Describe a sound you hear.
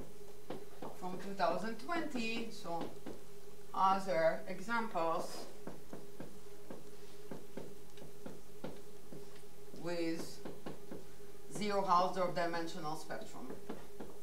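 A woman speaks calmly in short bursts.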